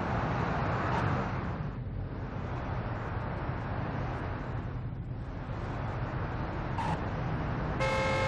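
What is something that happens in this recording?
Car tyres screech and spin on the road.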